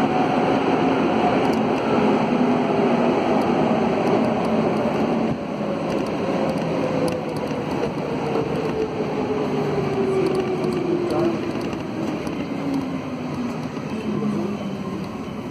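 A train's motor whines and slowly falls in pitch as the train slows down.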